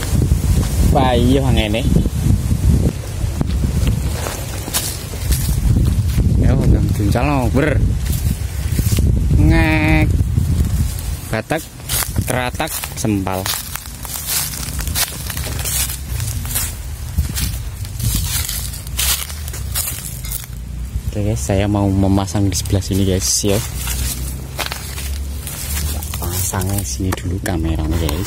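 Wind blows outdoors and rumbles, gusting strongly at first.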